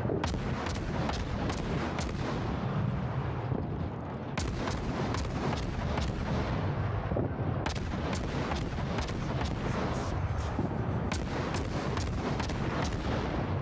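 Shells explode and splash into water with deep rumbling booms.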